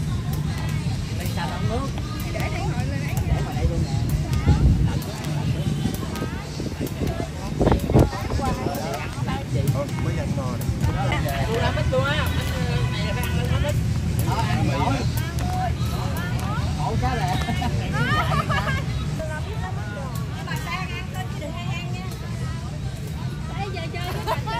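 A group of middle-aged women and men chat and call out to each other outdoors.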